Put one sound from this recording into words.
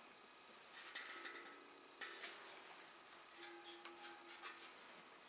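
A steel tongue drum rings softly with gentle, sustained notes.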